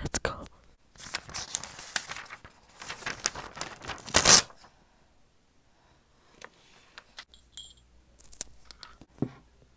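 Paper rustles and crinkles close to a microphone.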